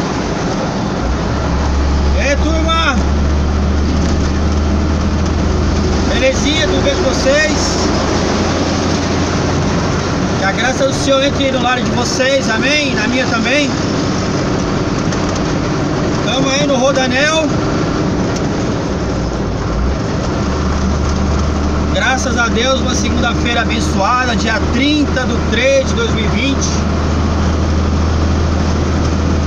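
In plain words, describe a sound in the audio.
Tyres roll and hum over the road surface.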